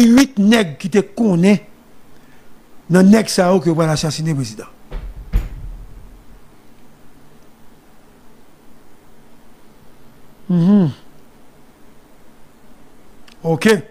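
A man speaks close to a microphone, in short bursts between pauses.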